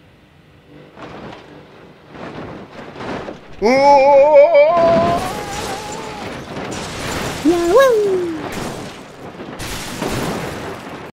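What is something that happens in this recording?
Metal crashes and bangs loudly as buses tumble.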